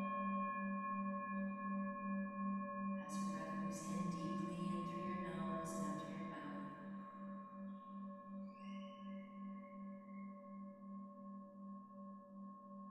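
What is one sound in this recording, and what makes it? A metal singing bowl rings with a sustained tone that pulses in a slow, wavering beat.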